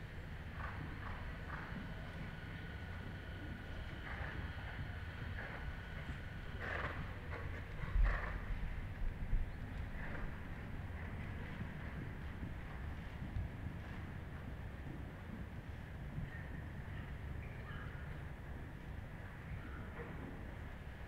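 A horse's hooves thud softly on sand in a large arena.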